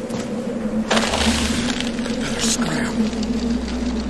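A magical burst whooshes loudly.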